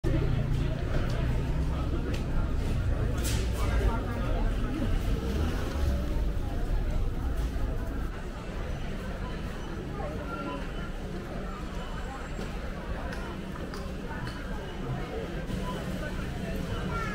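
Shopping cart wheels rattle over concrete.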